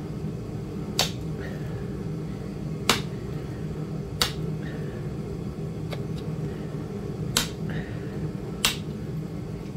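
A metal tool clicks sharply now and then.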